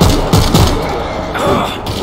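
A heavy blow strikes a body.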